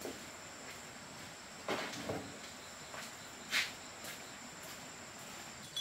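Footsteps in sandals scuff across a dirt floor.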